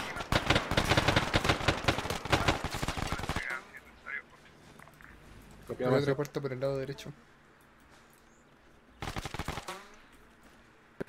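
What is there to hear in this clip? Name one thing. Rapid gunfire crackles nearby.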